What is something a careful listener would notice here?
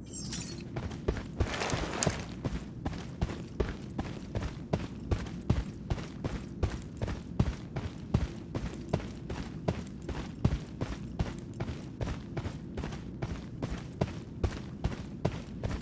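Footsteps thud steadily on grass and dirt.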